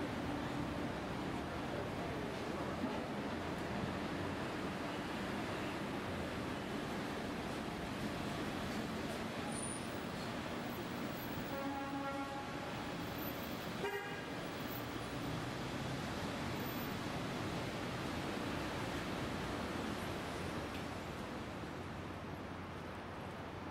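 City traffic rumbles steadily outdoors.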